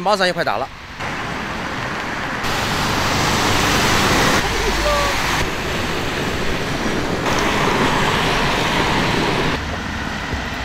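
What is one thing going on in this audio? Rain hisses steadily outdoors.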